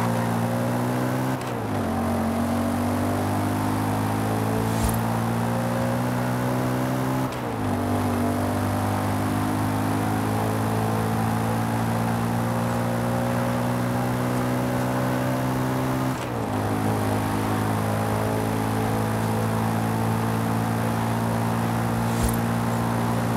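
A car engine roars as the car speeds up along a road.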